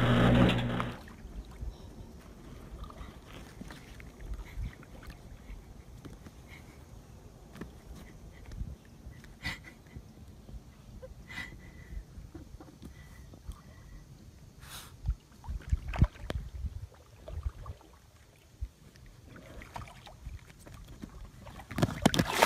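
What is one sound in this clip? Water laps against an inflatable kayak.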